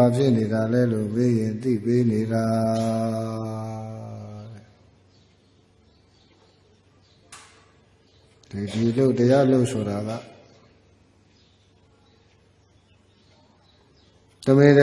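A man chants in a slow, drawn-out voice through a microphone, pausing between phrases.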